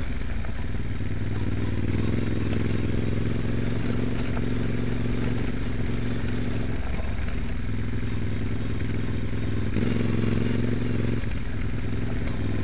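A Moto Guzzi V-twin adventure motorcycle rides along, its throttle opening and closing.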